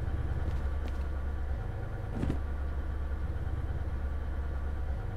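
A locomotive engine hums with a low, steady drone.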